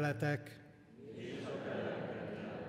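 A group of people murmur a response together.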